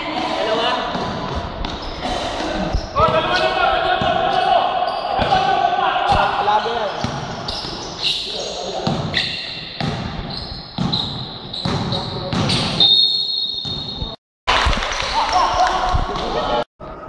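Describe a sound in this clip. A basketball bounces on a hard floor in an echoing hall.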